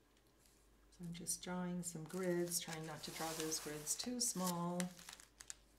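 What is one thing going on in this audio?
A woman speaks calmly into a microphone, close by.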